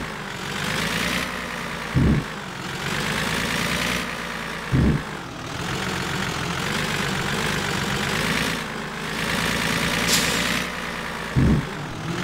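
A truck engine drones as the truck speeds up.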